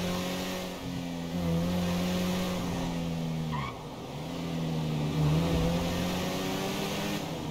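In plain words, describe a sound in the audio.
A car engine hums steadily and rises and falls in pitch as it shifts gears.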